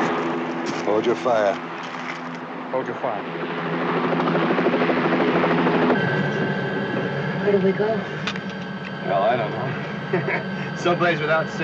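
A helicopter engine and rotor drone loudly.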